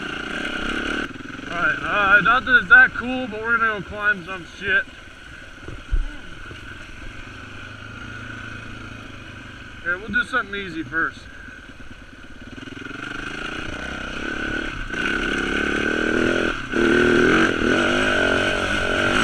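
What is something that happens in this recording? A dirt bike engine drones and revs up and down close by.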